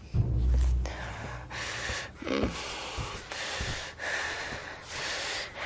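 Footsteps thud slowly across a wooden floor.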